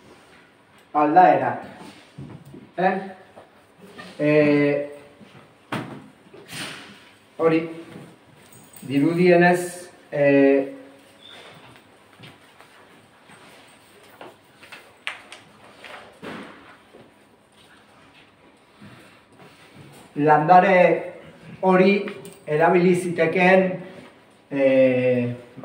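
A middle-aged man speaks calmly in a room with a slight echo, pausing often.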